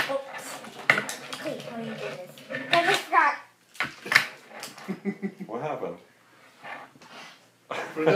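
A young boy talks and laughs nearby.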